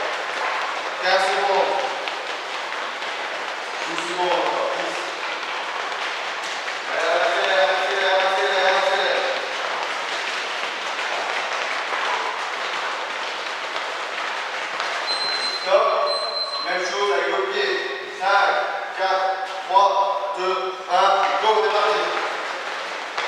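Men talk and call out loudly in a large echoing hall.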